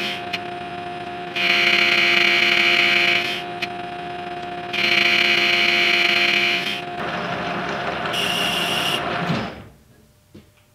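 A lathe motor hums steadily as the chuck spins, then winds down to a stop.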